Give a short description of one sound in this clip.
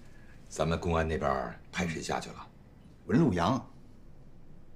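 A middle-aged man speaks calmly and seriously, close by.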